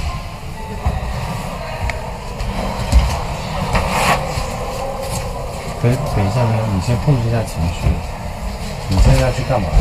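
Clothes rustle as they are handled.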